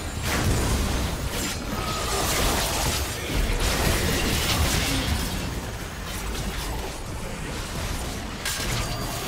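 Magic spells whoosh and crash in a fast video game fight.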